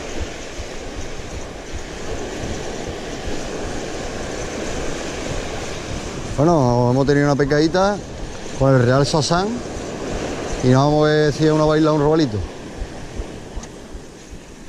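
Waves wash and break gently onto the shore.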